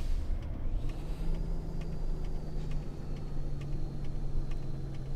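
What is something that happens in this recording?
A truck engine rumbles steadily at low speed.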